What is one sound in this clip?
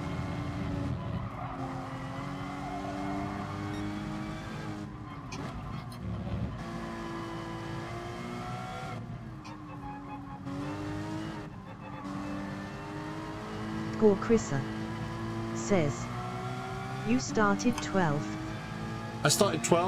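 A racing car engine drones and revs up and down through gear changes.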